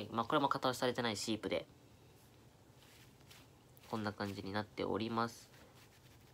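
A young person speaks close up, with animation.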